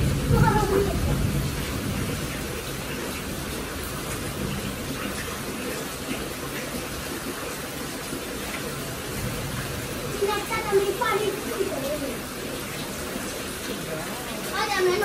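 Water splashes and sloshes as it is scooped by hand.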